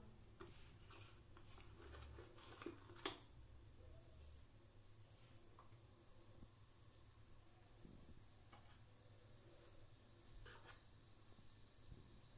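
Seeds sizzle and crackle softly in a hot pot.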